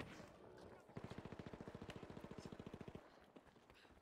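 A submachine gun fires a rapid burst of shots.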